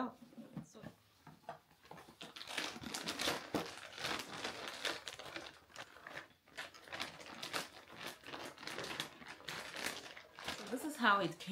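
Paper and plastic wrapping rustle and crinkle close by.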